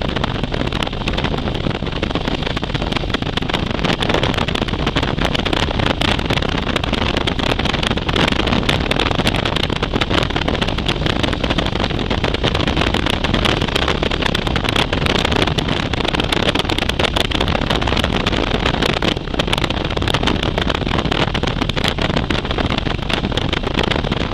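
Strong wind roars loudly and steadily past a moving motorcycle.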